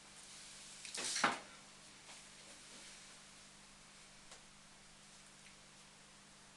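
Small objects clatter and rustle on a table close by.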